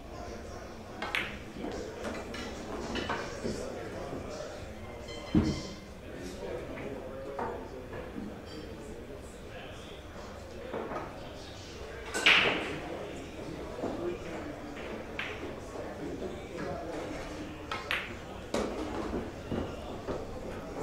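Billiard balls clack against each other.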